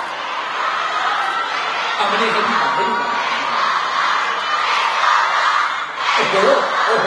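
A man speaks with animation through a loudspeaker.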